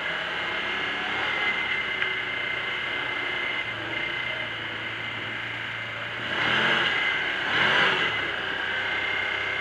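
Tyres rumble on a dirt road.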